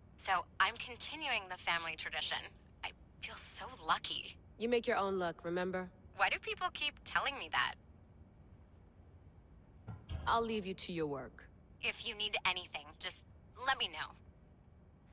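A young woman speaks calmly and closely.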